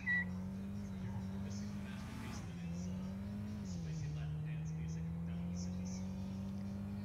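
A small car engine hums steadily, its pitch dipping as the car shifts gear.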